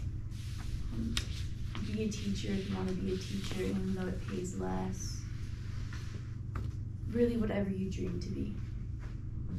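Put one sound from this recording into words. A young woman speaks calmly, in a pause-filled way.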